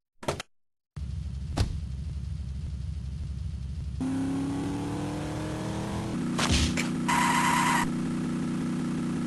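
A video game car engine hums steadily while driving.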